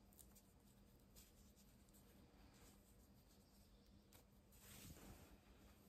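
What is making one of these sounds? Fabric rustles as hands handle cloth close by.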